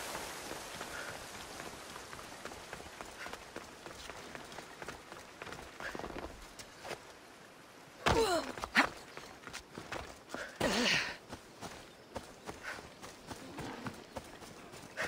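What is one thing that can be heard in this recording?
Footsteps run across grass and rock.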